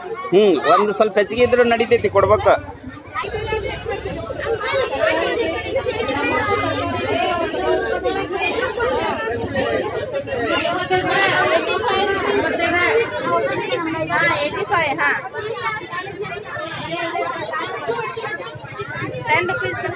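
A crowd of women chatters all around.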